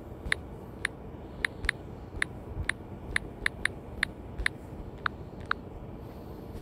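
Quick keyboard tap sounds click one after another.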